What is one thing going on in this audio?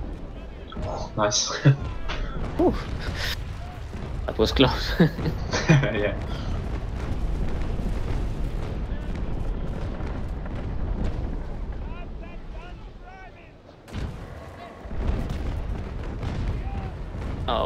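Ship cannons boom in the distance.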